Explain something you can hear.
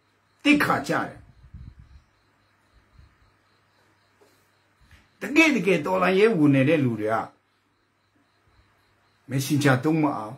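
A middle-aged man speaks close up in short, emphatic bursts with pauses between.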